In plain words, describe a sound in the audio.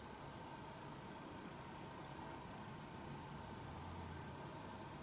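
Hands softly rub a towel over a face.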